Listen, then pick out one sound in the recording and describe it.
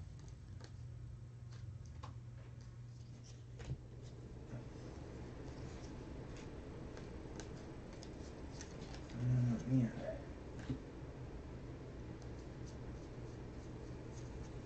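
Trading cards rustle and flick softly as they are shuffled by hand.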